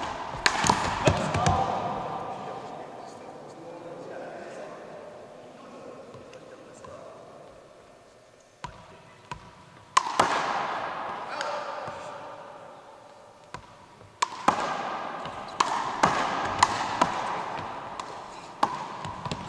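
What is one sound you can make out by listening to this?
Sneakers squeak sharply on a hardwood floor in a large echoing gym.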